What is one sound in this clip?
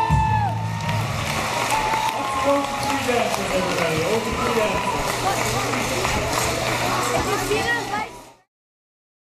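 A band plays lively music in a large echoing hall.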